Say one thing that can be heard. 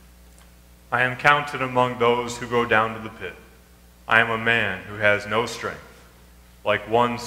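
A young man reads aloud through a microphone in an echoing hall.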